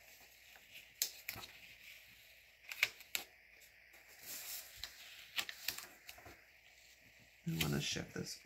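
Paper rustles and crinkles close by as a sticker is peeled and pressed down.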